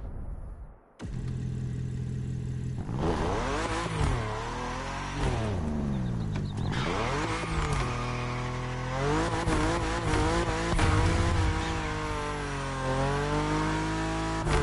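A car engine revs and roars as the car speeds up.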